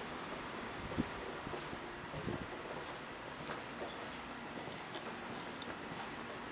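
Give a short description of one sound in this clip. Footsteps tap on a hard floor in a narrow passage.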